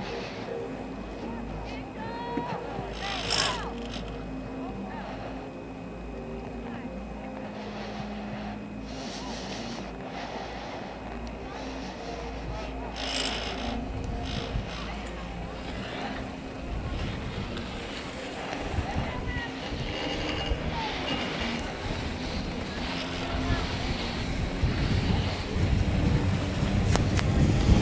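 A chairlift hums and rattles steadily along its cable.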